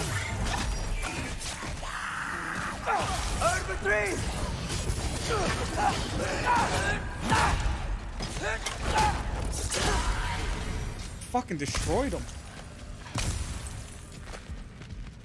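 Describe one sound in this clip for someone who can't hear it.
Weapons clash and thud in a busy fight.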